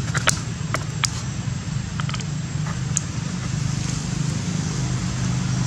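A plastic bottle crinkles and clicks as a monkey handles it.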